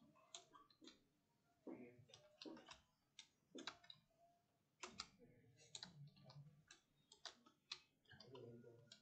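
Keyboard keys click in quick bursts.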